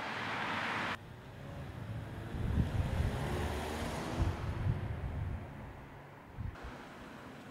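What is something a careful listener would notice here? A car engine rumbles up close as it pulls slowly away.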